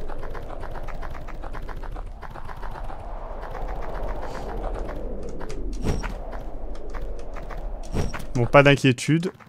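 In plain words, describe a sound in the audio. Upbeat electronic music plays.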